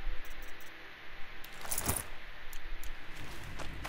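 Menu selections click softly.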